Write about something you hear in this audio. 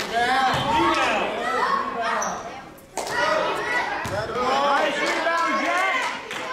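Children shout and cheer excitedly in an echoing gym.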